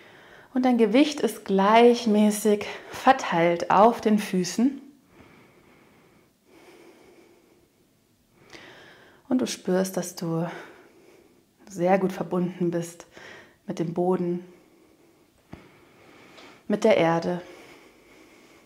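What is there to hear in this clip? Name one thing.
A young woman speaks calmly and clearly into a clip-on microphone, with pauses.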